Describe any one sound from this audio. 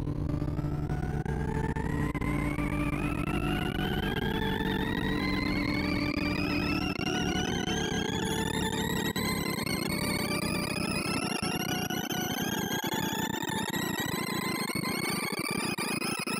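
Rapid electronic beeps sweep steadily upward in pitch, over and over.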